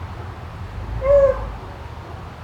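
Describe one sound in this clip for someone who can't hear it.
A dog barks nearby.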